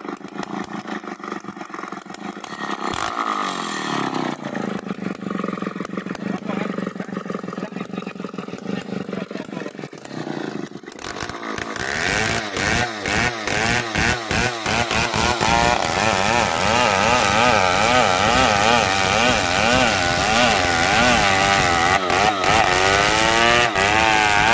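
A chainsaw cuts through a hardwood log.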